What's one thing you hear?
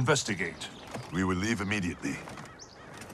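A younger man answers firmly.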